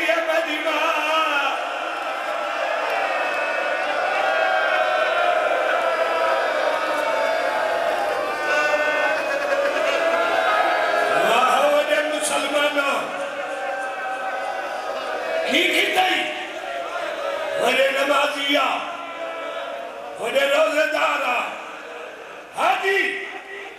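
A crowd of men chants together in loud, repeated bursts.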